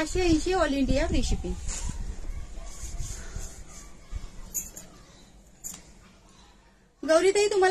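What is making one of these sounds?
A middle-aged woman speaks close by with animation.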